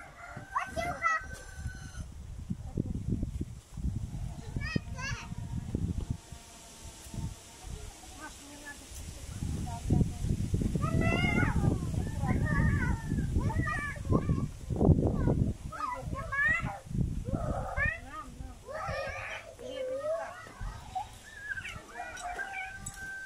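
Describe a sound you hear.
Children talk and call out in high voices outdoors.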